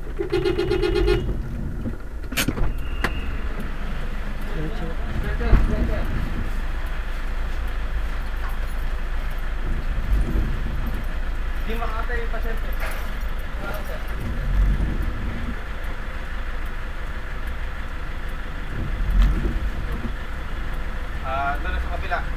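Rain patters on a car windshield.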